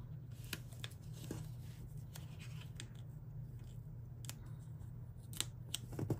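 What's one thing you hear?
A sticker peels off its backing sheet.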